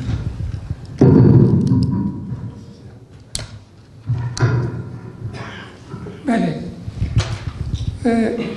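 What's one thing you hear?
Microphones are bumped and handled with low thuds and rustling, close up.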